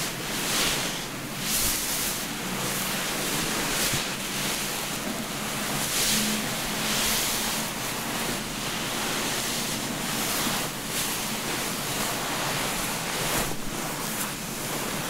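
A towel rubs and rustles against hair up close.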